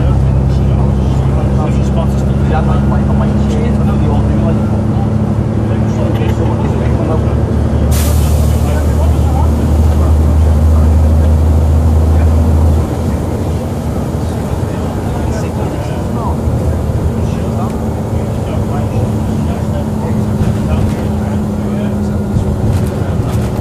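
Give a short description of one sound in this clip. A bus engine hums and rumbles steadily, changing pitch as the bus moves.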